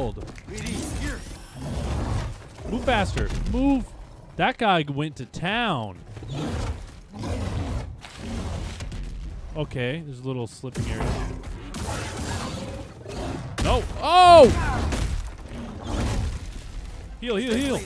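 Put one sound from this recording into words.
A creature roars and growls.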